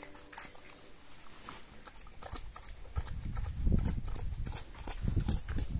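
A pig slurps and chomps food from a bowl close by.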